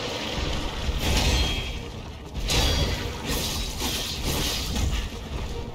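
Metal blades clash and ring against a heavy body.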